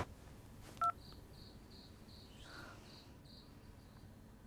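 A phone gives a series of short beeps.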